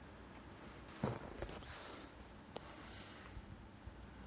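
A phone bumps and scrapes as it is picked up close by.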